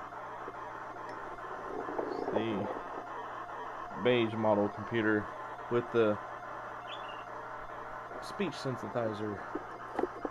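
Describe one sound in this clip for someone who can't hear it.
A cassette player hums and screeches steadily as it loads data.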